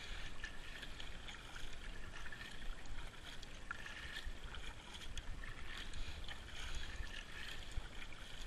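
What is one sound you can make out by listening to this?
A paddle splashes and dips into water with each stroke.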